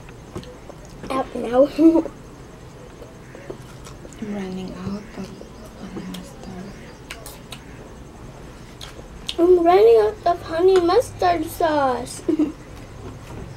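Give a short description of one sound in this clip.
A young girl talks close to the microphone.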